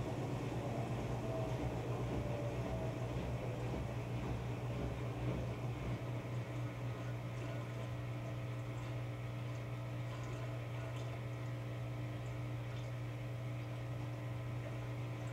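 Water swishes inside a washing machine drum.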